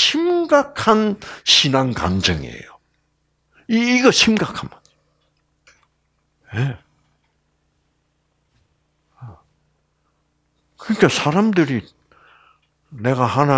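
An elderly man lectures with animation through a microphone, pausing often.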